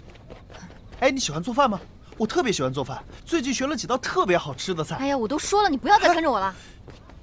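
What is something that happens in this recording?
A young woman speaks coldly and sharply.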